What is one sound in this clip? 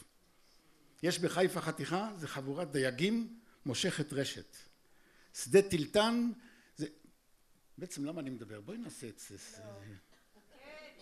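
An elderly man reads out through a microphone.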